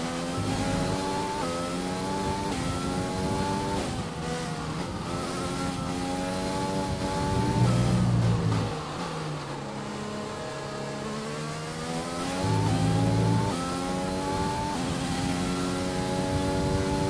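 A racing car engine screams at high revs, rising through each gear and dropping with each shift.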